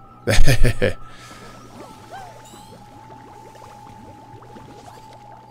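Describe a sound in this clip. Video game sound effects chime and whoosh softly.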